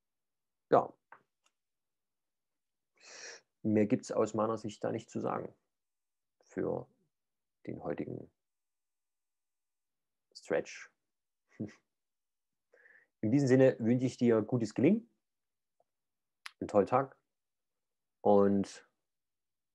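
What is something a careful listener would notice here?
A man speaks calmly, close to a microphone, with pauses.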